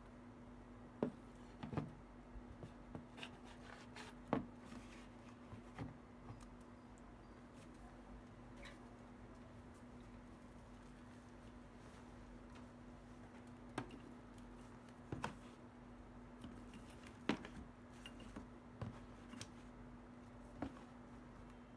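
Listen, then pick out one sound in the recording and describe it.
Plastic devices knock and clatter as a hand sets them down and moves them.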